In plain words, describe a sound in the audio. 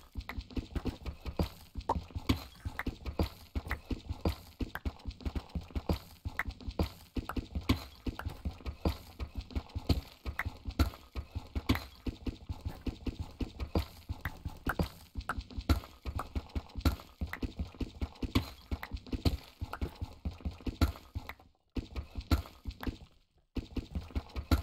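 A pickaxe chips at stone with rapid, repeated taps.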